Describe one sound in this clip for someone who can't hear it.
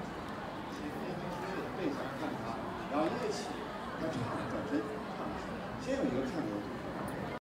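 A young man speaks through a microphone over loudspeakers.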